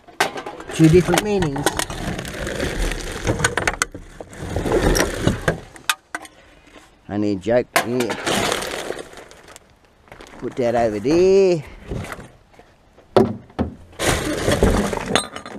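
Rubbish rattles and crashes as it tumbles out of a wheelie bin.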